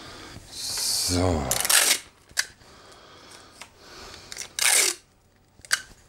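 Tape tears off a roll with a short rip.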